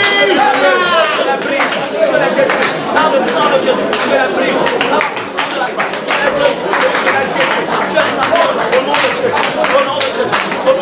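A crowd of men and women sing loudly together.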